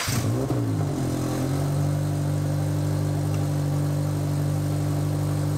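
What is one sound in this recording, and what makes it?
A car engine idles with a steady, deep rumble.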